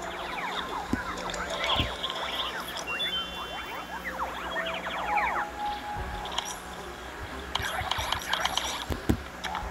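Bright, sparkling game chimes ring out in quick bursts.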